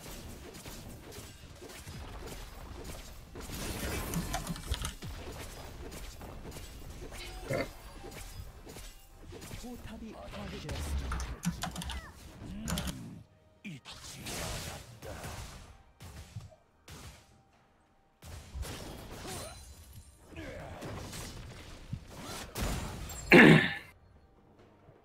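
Magical blasts and clashing hits burst in quick succession.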